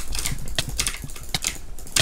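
Sword blows land in quick succession.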